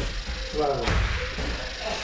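Bodies thump and scuffle on a gym mat.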